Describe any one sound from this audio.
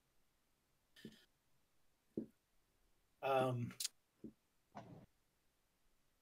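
A man laughs briefly over an online call.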